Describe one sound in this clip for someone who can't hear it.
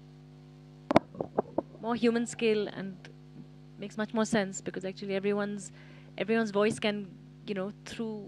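A young woman speaks into a microphone, heard through a loudspeaker.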